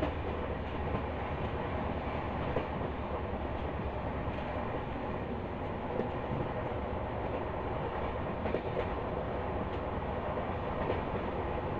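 A train rumbles along steadily with wheels clattering on the tracks.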